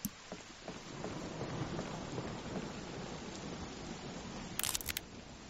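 A man murmurs quietly close to a microphone.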